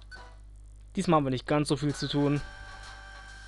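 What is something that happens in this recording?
A loud video game jingle sounds, rising in pitch.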